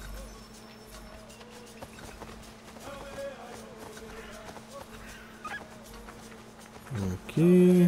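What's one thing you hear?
Footsteps run through grass and leaves.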